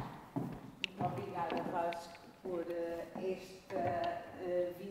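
A young woman speaks through a microphone in a large echoing hall.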